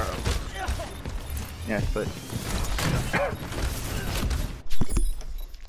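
Futuristic weapons fire and blast in rapid bursts.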